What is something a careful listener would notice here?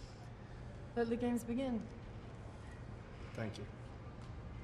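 A young woman speaks briefly and calmly nearby.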